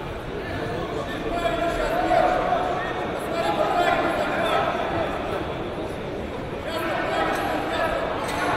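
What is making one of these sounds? Spectators cheer louder toward the end.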